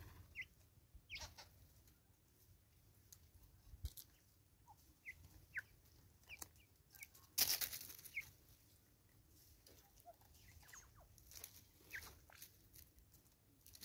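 Birds peck at seed on a wooden stump with soft taps.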